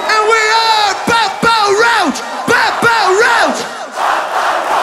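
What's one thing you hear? A man screams a song through a loudspeaker system.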